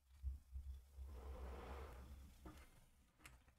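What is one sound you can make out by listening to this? A young man breathes out softly.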